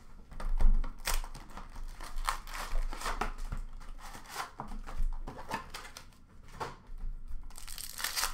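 Cardboard boxes knock and slide as they are handled.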